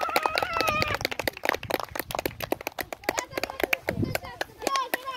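A person claps hands quickly and repeatedly.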